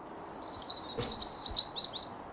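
A metal mailbox lid clanks open.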